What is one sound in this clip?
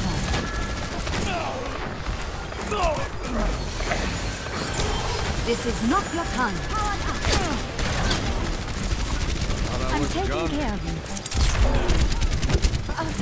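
Game characters clash with loud impacts and blasts.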